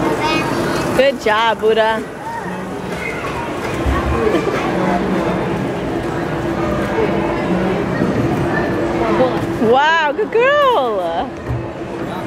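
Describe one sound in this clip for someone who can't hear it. A little girl squeals in a high voice nearby.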